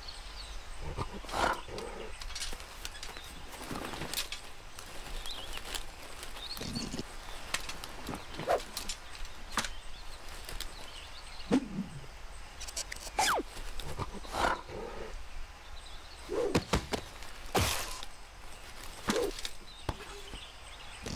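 A cartoon bear grunts and exclaims in short bursts.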